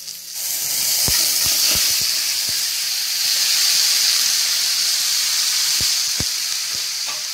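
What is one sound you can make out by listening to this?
A wooden spatula knocks against a metal pan.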